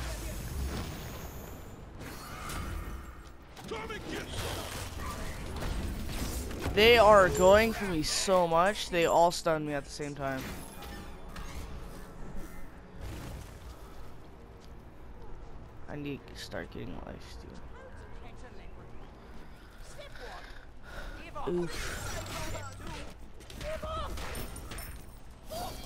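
Game spell blasts and weapon hits crackle and thump during a fight.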